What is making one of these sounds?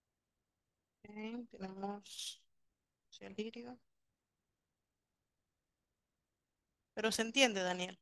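A woman speaks calmly in short phrases through an online call.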